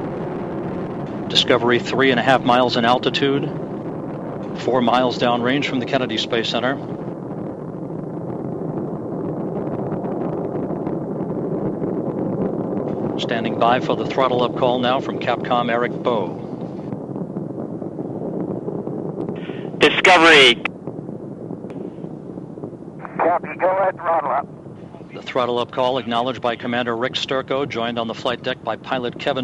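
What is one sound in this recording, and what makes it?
Rocket engines roar with a steady, deep rumble.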